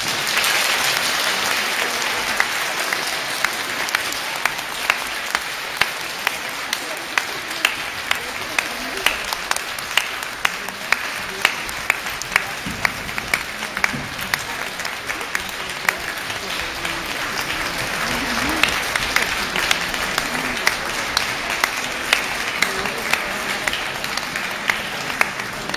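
An audience applauds throughout a large echoing hall.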